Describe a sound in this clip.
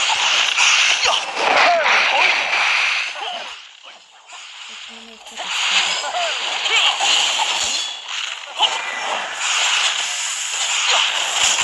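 Swords swish and clash in a fight.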